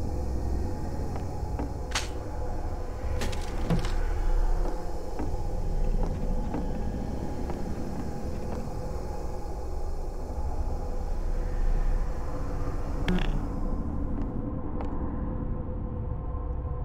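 A low electrical hum drones steadily.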